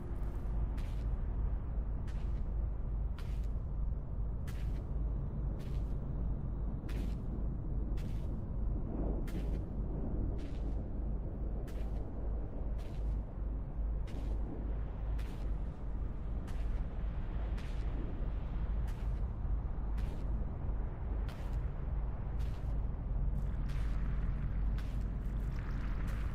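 Footsteps tread slowly and steadily on a hard surface.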